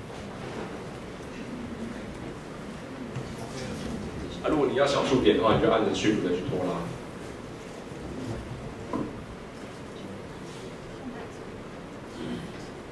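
A young man speaks calmly into a microphone in an echoing room.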